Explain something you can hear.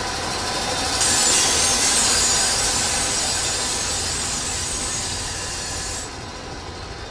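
A spinning saw blade grinds loudly.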